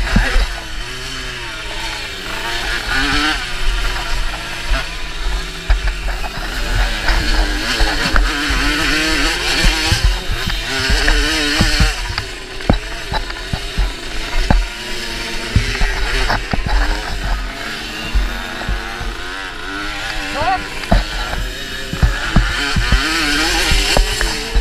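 Bumps and knocks thud as a motorbike rides over rough ground.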